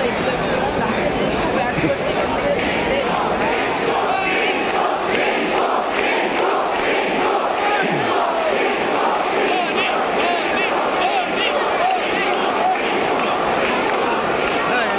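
A large stadium crowd roars and cheers steadily all around.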